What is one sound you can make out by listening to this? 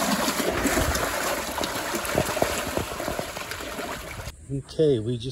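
Fish splash and thrash loudly in water.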